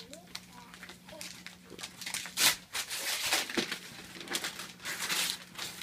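Wrapping paper rustles and tears as a small girl opens a gift.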